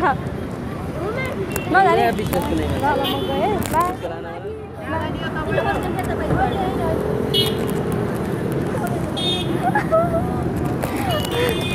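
Traffic hums outdoors in the background.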